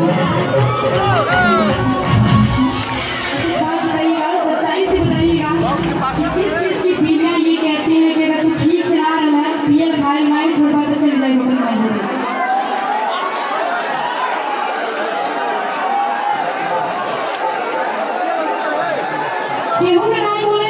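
A woman sings loudly through loudspeakers.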